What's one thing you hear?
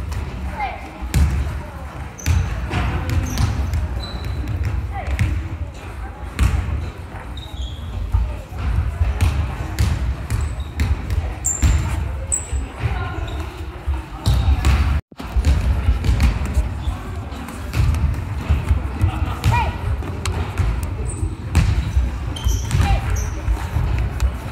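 Bare feet thump and shuffle on a wooden floor.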